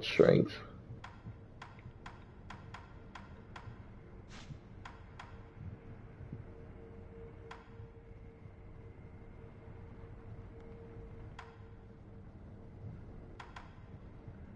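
Short soft clicks sound as menu selections change.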